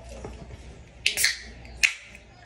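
A drink can snaps open with a hiss.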